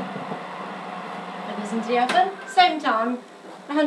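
An oven door shuts with a thud.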